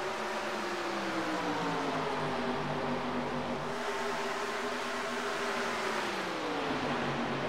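Race car engines drop in pitch as cars sweep past.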